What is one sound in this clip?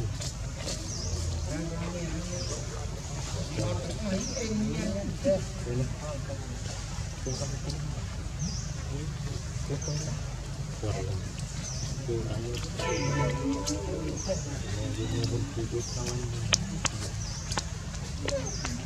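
A baby monkey whimpers softly close by.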